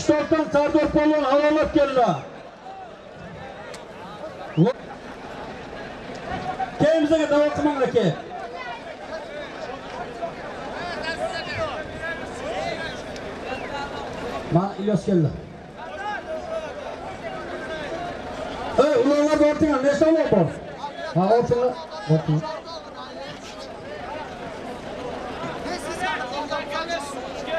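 A crowd of men chatters outdoors.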